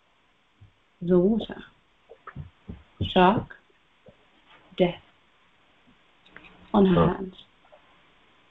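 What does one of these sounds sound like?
A woman speaks with animation in short bursts, close to the microphone, as if over an online call.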